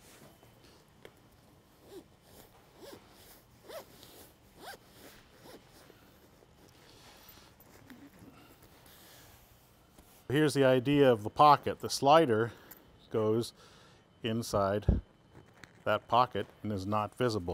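A zipper rasps open along a cushion cover.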